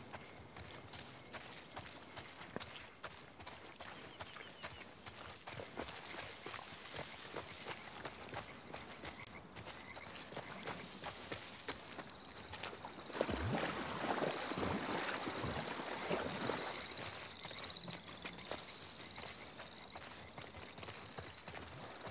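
Footsteps rustle through dense ferns and undergrowth.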